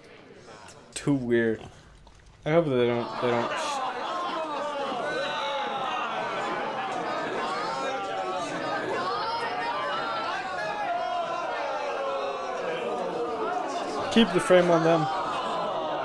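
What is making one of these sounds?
A young man talks and laughs briefly, close to a microphone.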